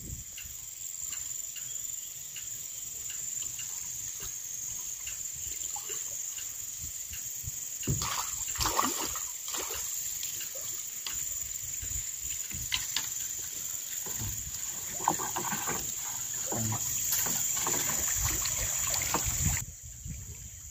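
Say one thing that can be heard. Water sloshes against a wooden boat hull.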